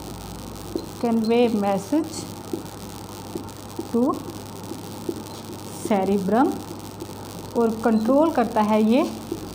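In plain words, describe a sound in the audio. A woman speaks calmly in a lecturing tone, close by, in short phrases.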